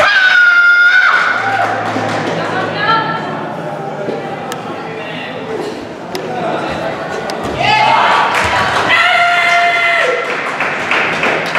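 Martial artists shout short, sharp cries in a large echoing hall.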